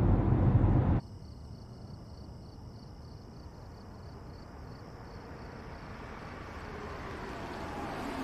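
A car slowly drives closer along a quiet road.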